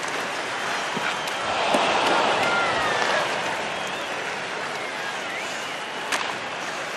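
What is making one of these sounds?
A puck cracks against a stick.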